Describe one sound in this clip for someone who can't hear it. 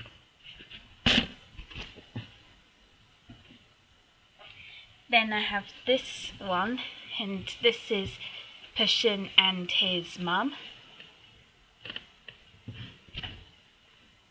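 A hand bumps and rubs against the microphone.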